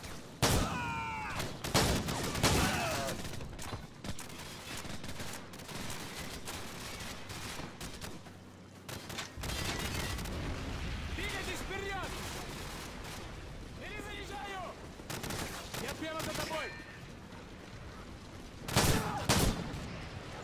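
A shotgun fires loud, sharp blasts.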